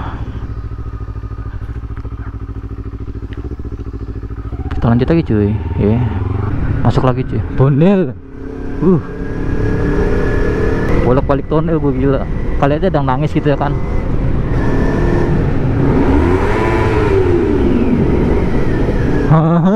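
A motorcycle engine runs steadily, then revs up and down sharply.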